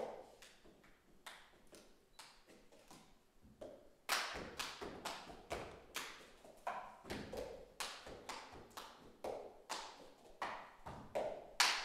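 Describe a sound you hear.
Plastic cups tap and knock on a wooden floor in a quick, steady rhythm, growing louder partway through.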